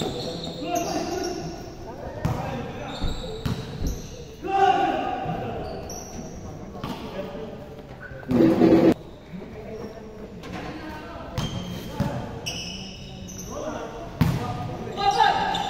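Young people call out to each other during play.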